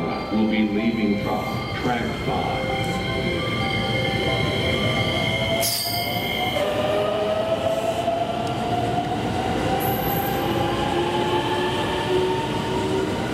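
An electric train pulls away with a rising motor whine.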